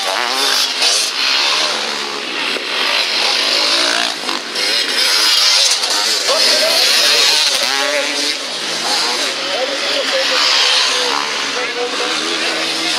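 Dirt bike engines rev loudly and whine close by, rising and falling in pitch.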